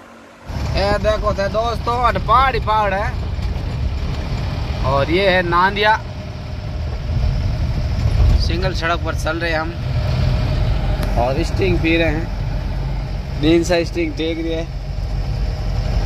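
A young man speaks loudly inside a vehicle.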